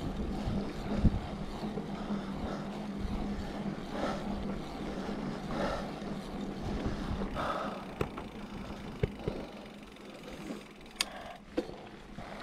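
Bicycle tyres roll steadily over a rough paved lane.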